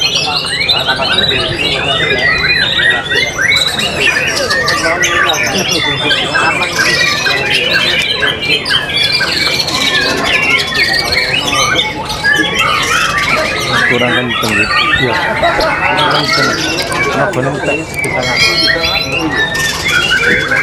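A caged songbird sings loud, fast, varied warbling trills.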